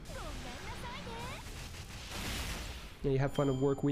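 Video game battle effects whoosh and chime.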